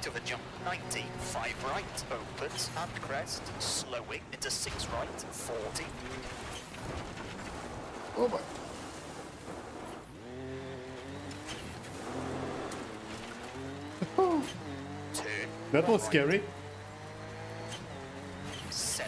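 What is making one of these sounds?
A rally car engine roars and revs through gear changes.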